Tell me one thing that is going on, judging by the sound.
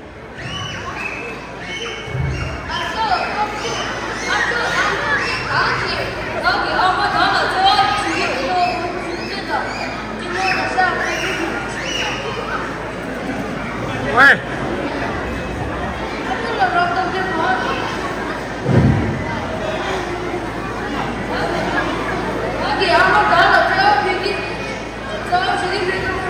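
A second child answers with expression.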